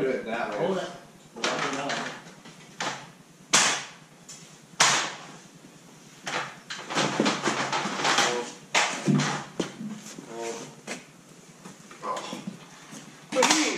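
A metal ladder rattles and clanks as it is climbed and moved.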